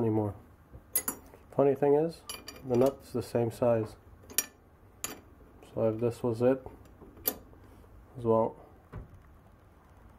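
A wrench clinks against a metal nut.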